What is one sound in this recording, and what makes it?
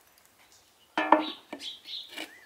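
A steel pan clanks down onto a metal grill.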